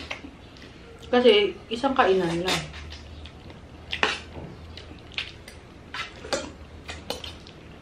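A spoon and fork clink against a plate.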